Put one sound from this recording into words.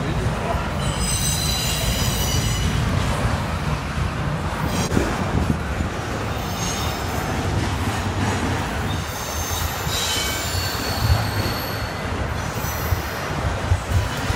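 Train wheels squeal on the rails now and then.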